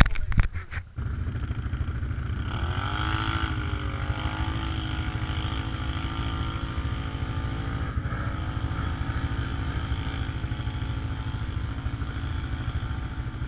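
A quad bike engine drones steadily up close.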